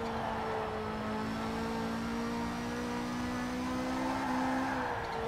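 A racing car engine roars steadily at high speed, slowly rising in pitch.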